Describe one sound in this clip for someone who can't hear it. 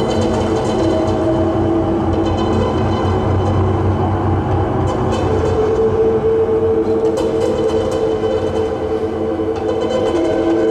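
A modular synthesizer plays droning, buzzing electronic tones that shift slowly.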